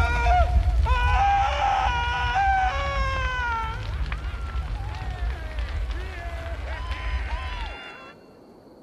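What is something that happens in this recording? A man screams in agony.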